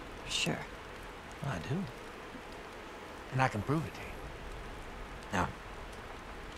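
A young girl speaks softly and earnestly.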